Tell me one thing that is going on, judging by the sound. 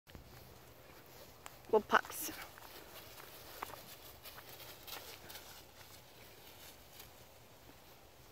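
Dogs trot through dry leaves, which rustle and crunch.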